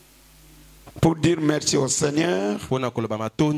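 A man speaks loudly and with emphasis into a microphone, heard through loudspeakers.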